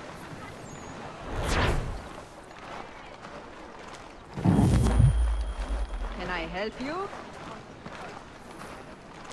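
Footsteps tread on wooden boards.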